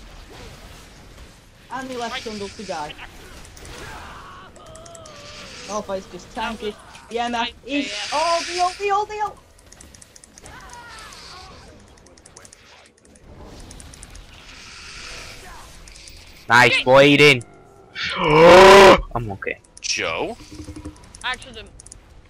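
Spell blasts whoosh and crackle during a fight in a computer game.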